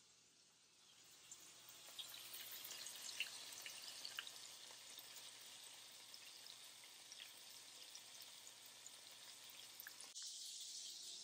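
Burger patties sizzle and crackle in a hot pan.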